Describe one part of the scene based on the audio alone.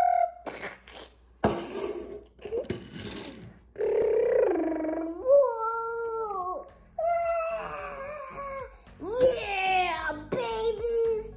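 Plastic toy bricks clatter on a wooden table.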